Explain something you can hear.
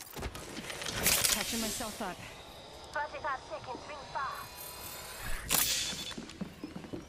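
A syringe hisses and clicks as it is used.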